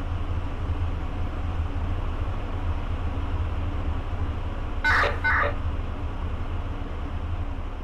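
A train engine hums low and steady.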